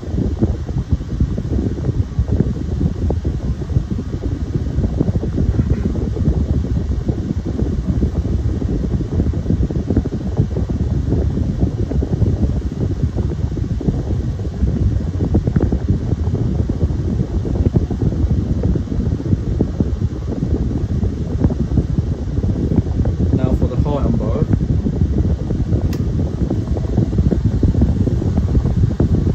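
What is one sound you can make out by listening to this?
Electric fans whir with a steady low rushing hum.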